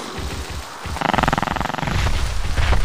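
A small dinosaur screeches.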